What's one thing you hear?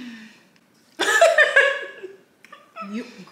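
Two young women laugh.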